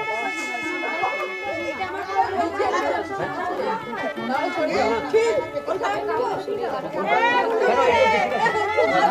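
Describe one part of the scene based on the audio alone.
Several women talk and call out over one another close by.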